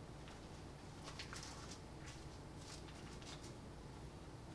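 Paper rustles softly.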